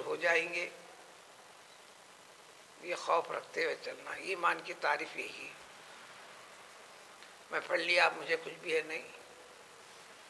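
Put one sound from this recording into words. An elderly man speaks calmly in short bursts with pauses, close by.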